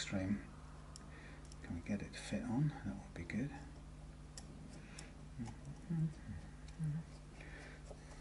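Small metal parts click and tap on a guitar headstock.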